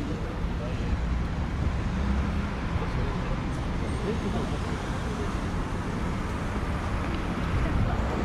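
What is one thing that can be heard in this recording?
Cars drive past at a crossing.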